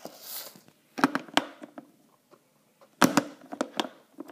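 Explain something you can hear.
A plastic lid clicks and taps under fingers.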